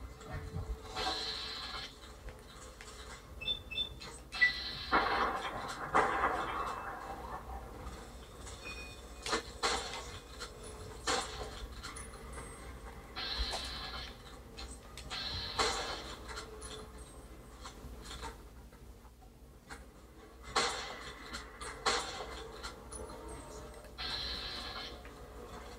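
Gunshots and game sounds play through a television's speakers.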